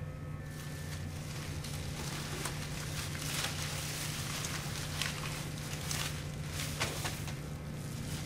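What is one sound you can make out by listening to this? Paper and plastic wrappers rustle and crinkle as hands gather them up.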